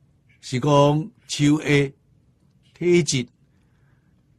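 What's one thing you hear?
An elderly man speaks calmly and slowly into a microphone.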